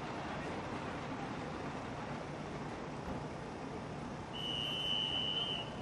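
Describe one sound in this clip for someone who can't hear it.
A crowd murmurs and cheers outdoors.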